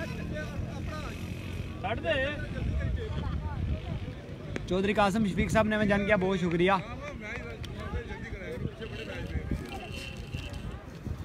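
Young men talk and call out to each other at a distance outdoors.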